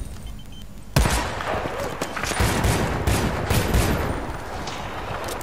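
Pistol shots crack.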